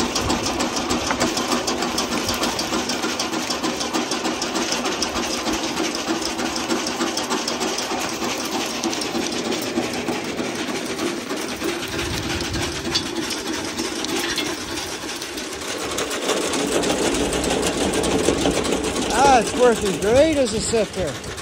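A motor-driven soil sifter rattles and hums steadily.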